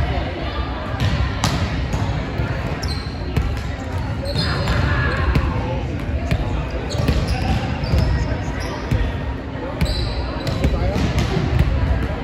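Young men call out to each other across the gym.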